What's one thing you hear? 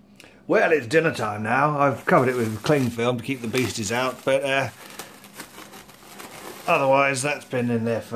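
Plastic cling film crinkles as hands pull it off a bowl.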